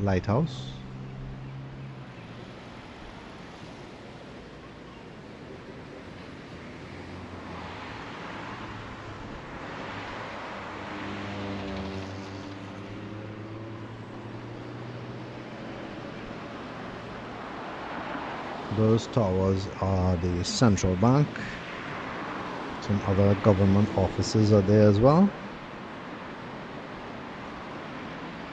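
Cars drive past steadily on a busy road outdoors.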